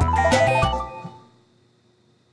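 A short bright video game jingle plays and fades.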